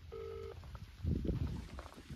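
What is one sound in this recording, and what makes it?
A man speaks briefly up close.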